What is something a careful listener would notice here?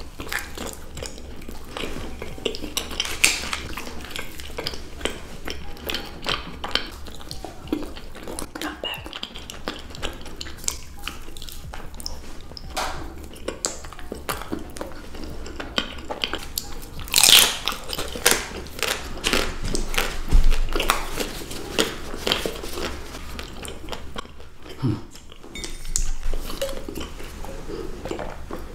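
Two women bite and chew crunchy chocolate snacks close to the microphone.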